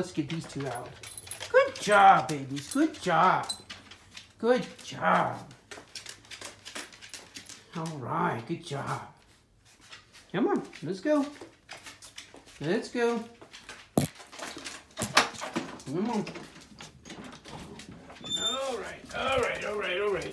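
A dog howls and bays loudly close by.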